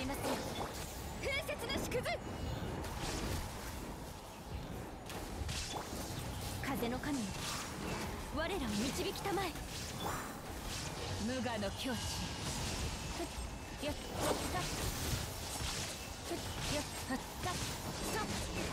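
Magical blasts crackle and boom.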